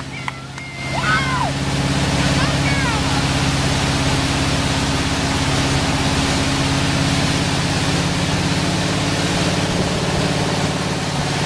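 Water sprays and rushes under a water ski.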